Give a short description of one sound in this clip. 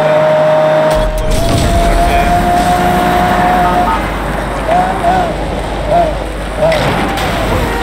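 Electric crackling bursts out behind a car.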